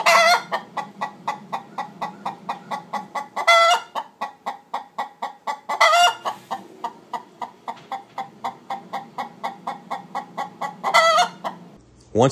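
A hen lets out loud, drawn-out squawks now and then.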